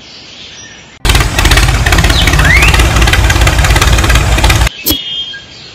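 A small toy motor whirs and buzzes as a toy tractor drives.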